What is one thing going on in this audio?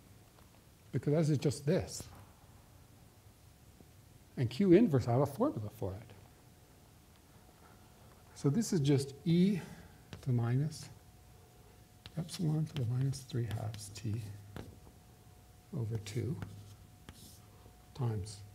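A man lectures calmly, heard through a microphone.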